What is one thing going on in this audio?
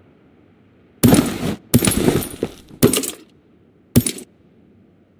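Gear rustles briefly as items are picked up.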